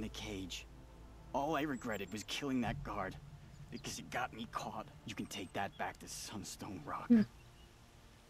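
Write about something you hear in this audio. A man speaks strained and weary, close by.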